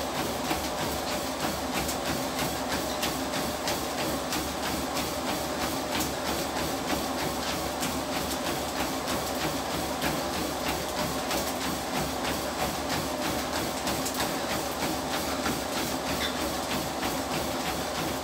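Footsteps thud rapidly and steadily on a running treadmill.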